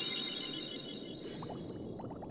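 A bright magical chime rings and shimmers.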